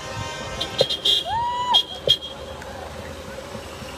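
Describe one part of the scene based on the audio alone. A car drives slowly past on the road.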